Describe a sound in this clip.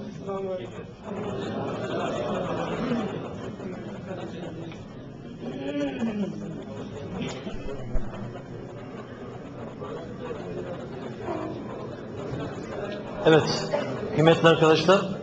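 A man sings a melodic chant into a microphone.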